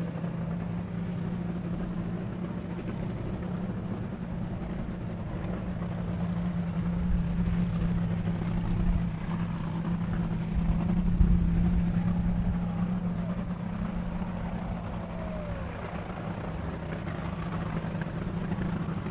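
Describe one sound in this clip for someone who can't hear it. A racing engine rumbles loudly and steadily nearby.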